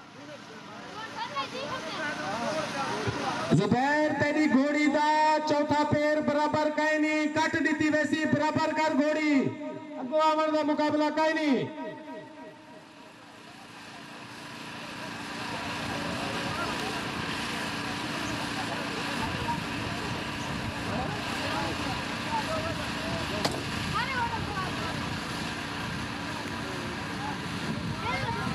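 A large crowd murmurs and cheers far off in the open air.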